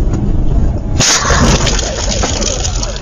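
A car slams into another car with a loud crash.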